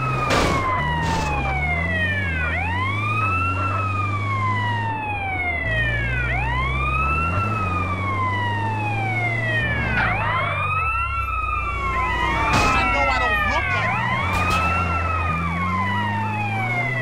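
An ambulance siren wails steadily, rising and falling.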